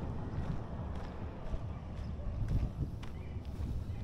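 A van engine hums as the van drives slowly past nearby.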